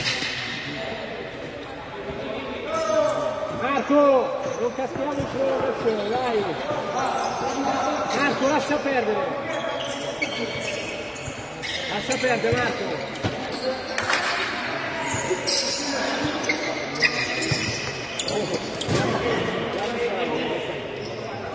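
Players' shoes squeak on the court.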